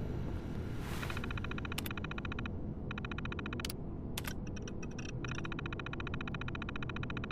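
A computer terminal chirps and beeps as text prints out.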